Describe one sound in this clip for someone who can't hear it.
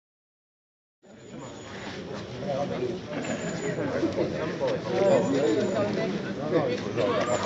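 Several men talk among themselves outdoors.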